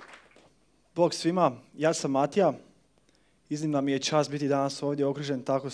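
A man speaks to an audience through a microphone in a hall.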